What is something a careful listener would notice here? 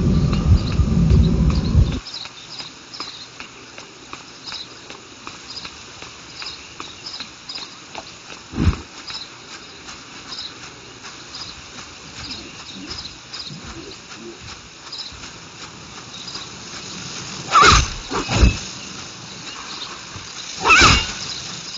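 Quick light footsteps patter steadily on stone.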